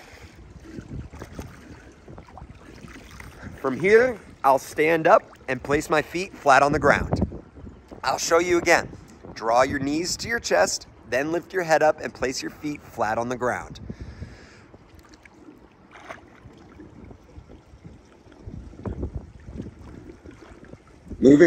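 Water splashes softly as a swimmer strokes.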